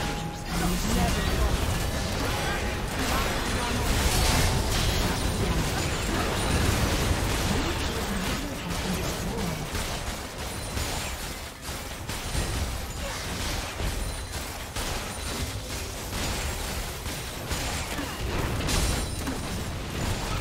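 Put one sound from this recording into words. Weapons clash and strike repeatedly in a game battle.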